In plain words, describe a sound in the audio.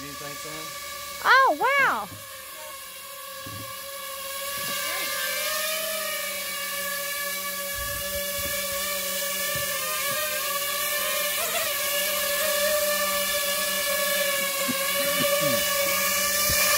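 A drone's propellers buzz with a steady high whine that grows louder as it comes closer.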